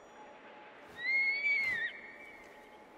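An eagle screeches overhead.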